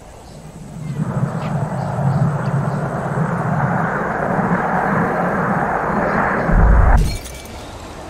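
A glass bowl rolls with a steady rumble over pavement.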